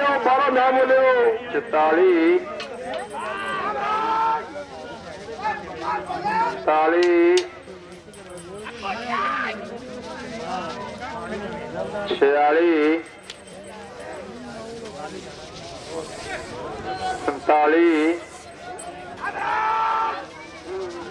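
Hooves pound on soft dirt as animals race past.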